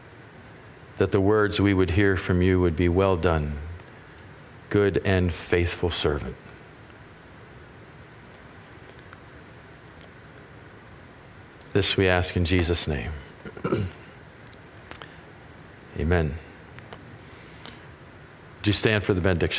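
A middle-aged man speaks calmly through a microphone, with pauses, in a slightly echoing room.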